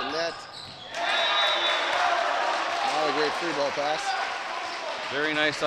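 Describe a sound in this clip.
A crowd cheers and claps in an echoing gym.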